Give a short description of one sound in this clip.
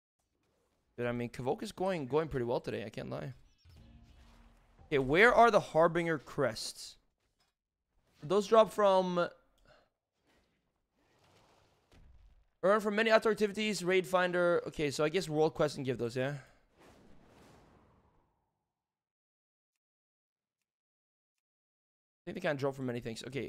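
A young man talks casually into a close microphone, in bursts with pauses.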